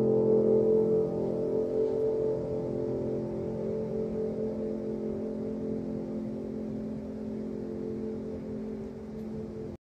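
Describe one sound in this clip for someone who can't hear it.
Piano notes ring on and slowly fade away.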